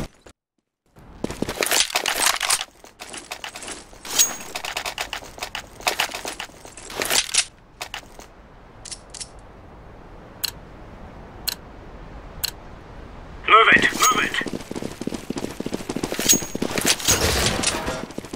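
Footsteps tap quickly on stone pavement.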